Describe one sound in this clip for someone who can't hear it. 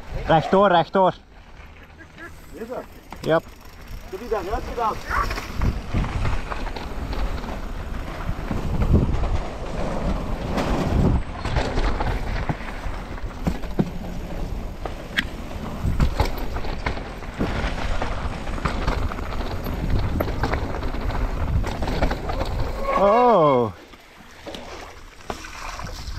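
Bicycle tyres roll and crunch over a dirt and gravel trail.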